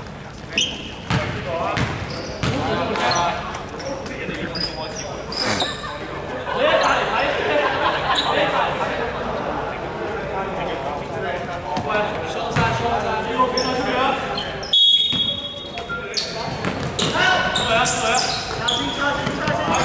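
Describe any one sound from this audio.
Young men call out to each other across an echoing gym.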